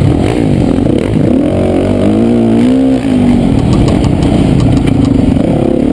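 A dirt bike engine revs loudly up and down close by.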